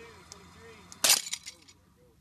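A rope snaps with a sudden loud crack.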